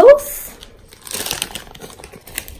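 Small beads pour from a plastic bag and patter into a jar of water.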